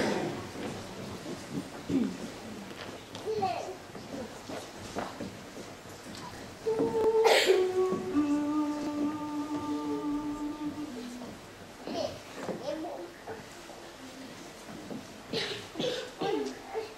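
A woman speaks briefly, heard through a microphone in a large hall.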